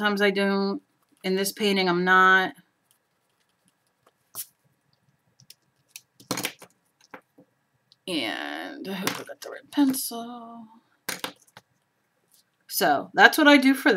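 A felt-tip marker squeaks softly across paper.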